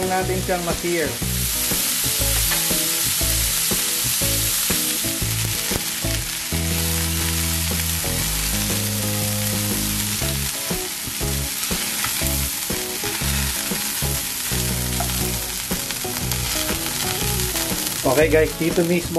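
Chicken sizzles loudly in hot oil in a frying pan.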